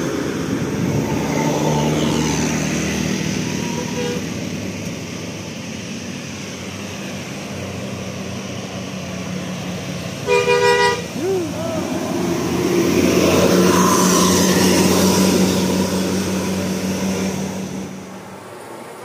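A bus engine rumbles as it drives past.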